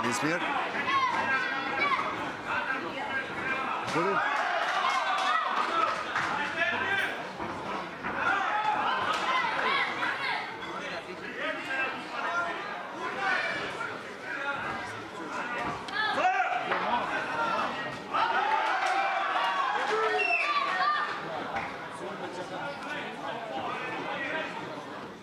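A crowd of spectators chatters and shouts throughout.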